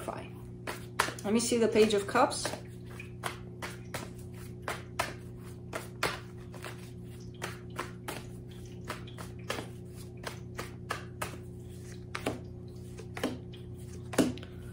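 Cards shuffle and tap together in a person's hands.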